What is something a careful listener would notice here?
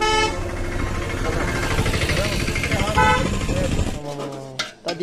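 An auto rickshaw engine rattles loudly close by.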